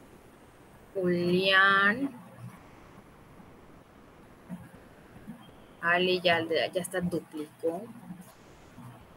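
A young woman speaks through an online call, in short bursts.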